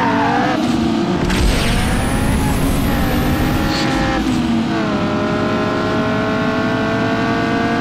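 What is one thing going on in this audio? A car engine whines steadily at high speed.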